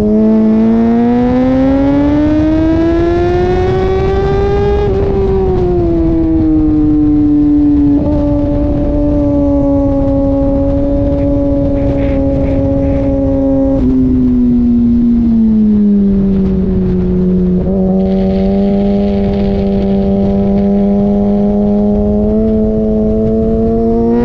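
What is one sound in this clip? A motorcycle engine roars loudly close by, its pitch rising and falling as the rider shifts gears.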